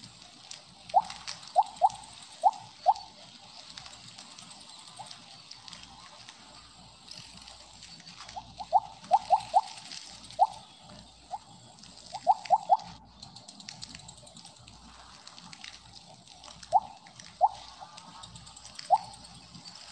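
Short game chimes blip again and again as a snake eats.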